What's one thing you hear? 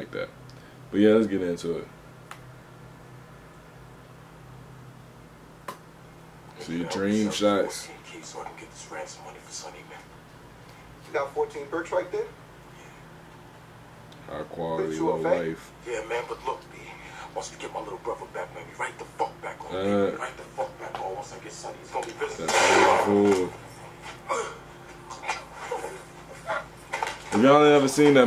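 A young man speaks close to a microphone in short, casual remarks.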